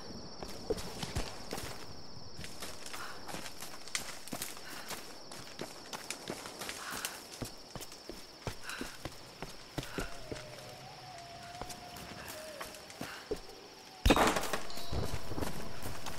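Footsteps run over stone and through undergrowth.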